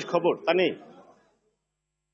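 A man speaks into a microphone at close range.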